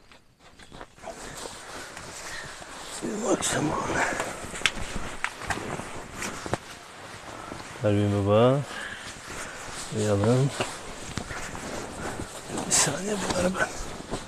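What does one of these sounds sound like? Sleeping bag fabric rustles and swishes close by.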